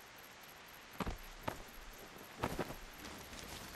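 A video game character heaves a body up.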